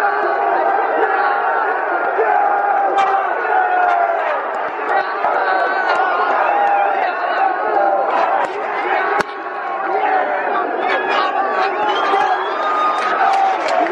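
Nearby fans clap their hands.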